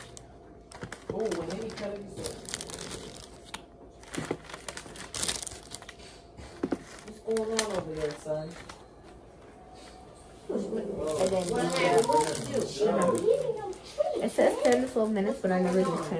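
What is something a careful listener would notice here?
Paper crinkles and rustles as it is handled.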